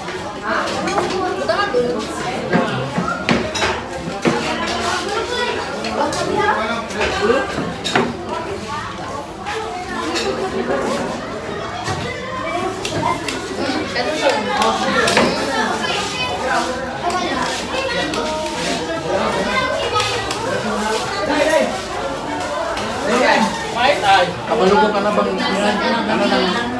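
Serving spoons clink and scrape against metal trays.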